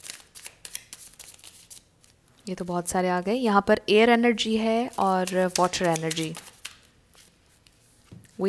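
Playing cards riffle and snap as they are shuffled by hand.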